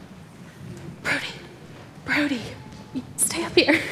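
A man speaks nearby in an echoing hall.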